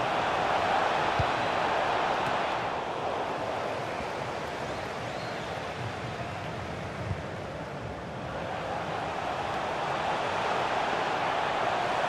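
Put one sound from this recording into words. A stadium crowd roars steadily, swelling and easing.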